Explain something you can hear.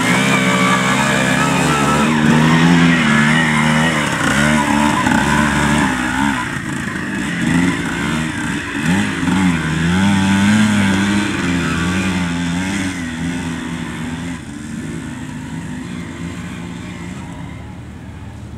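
Dirt bike engines rev loudly and sputter close by.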